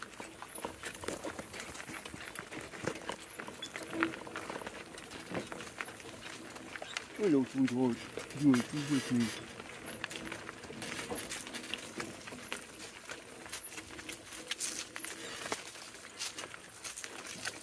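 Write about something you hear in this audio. Cart wheels crunch over gravel.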